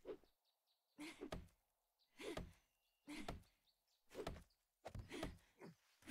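An axe chops into wood with dull knocks.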